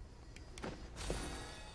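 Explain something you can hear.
A magical burst whooshes and crackles with sparkling chimes.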